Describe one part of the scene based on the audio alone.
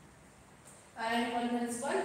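A young woman speaks clearly and calmly, close by.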